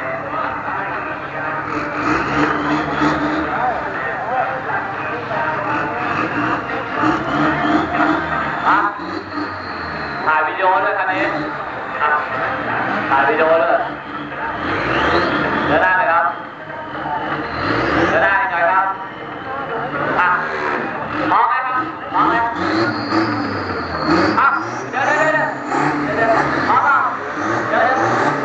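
A diesel pickup truck engine idles.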